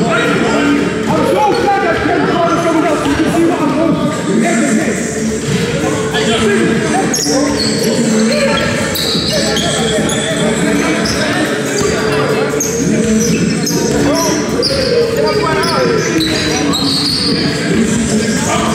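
Young men shout and call out to each other while playing.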